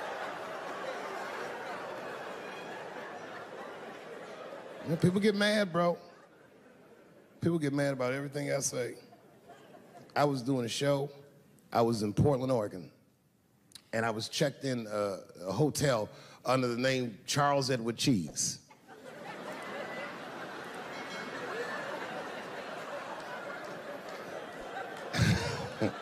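A large crowd laughs and applauds in a big hall.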